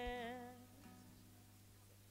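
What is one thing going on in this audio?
A woman sings into a microphone with a wavering voice.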